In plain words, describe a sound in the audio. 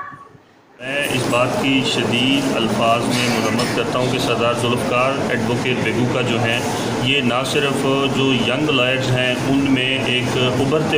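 A man speaks calmly and firmly into microphones, close by.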